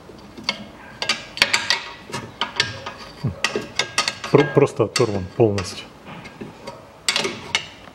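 A metal tool taps and scrapes against metal parts.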